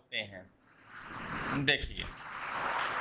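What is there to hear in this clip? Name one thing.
A felt eraser rubs across a whiteboard.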